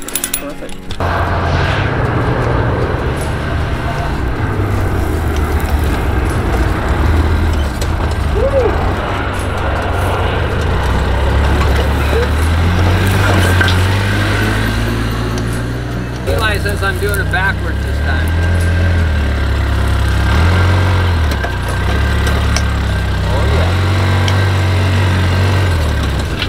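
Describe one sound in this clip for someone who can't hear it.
A utility vehicle engine idles and revs nearby as it drives over rough ground.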